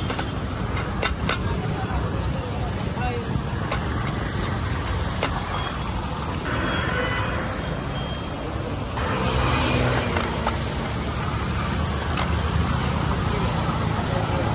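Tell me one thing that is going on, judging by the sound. Butter and food sizzle on a hot griddle.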